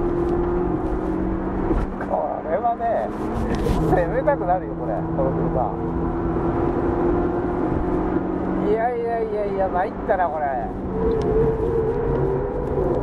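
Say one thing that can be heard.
A car engine hums and drones steadily from inside the car.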